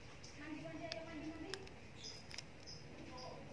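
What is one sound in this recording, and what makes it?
Paper crinkles softly.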